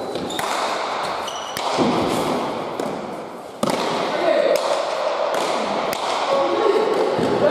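Shoes squeak on a hard floor as players run.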